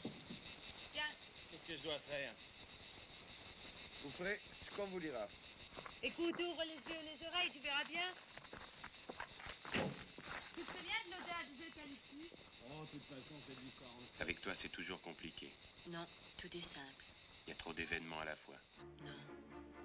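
A young man talks with animation nearby.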